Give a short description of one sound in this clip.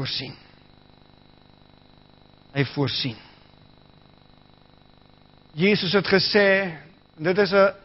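A middle-aged man speaks slowly and calmly through a microphone, with pauses, in a room with a slight echo.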